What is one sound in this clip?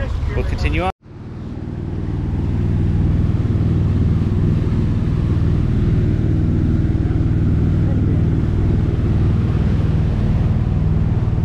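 Water churns in a boat's wake.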